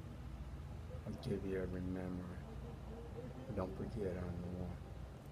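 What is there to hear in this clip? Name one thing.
A middle-aged man talks with animation close to a phone microphone.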